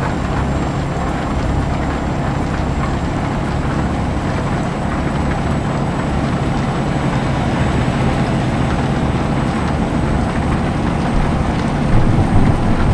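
A truck engine rumbles steadily at cruising speed.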